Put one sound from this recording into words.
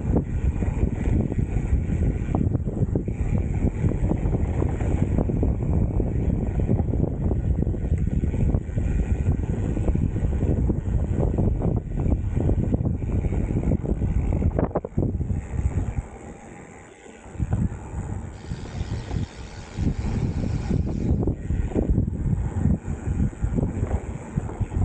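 Wind buffets loudly past a rider outdoors.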